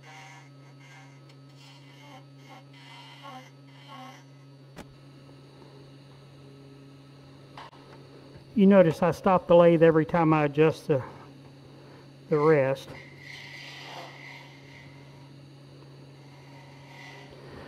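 A chisel scrapes against spinning wood.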